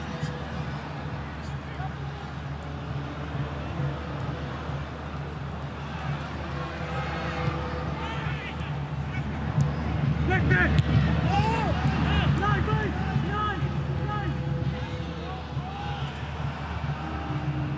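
A large crowd chants and roars steadily, growing louder midway.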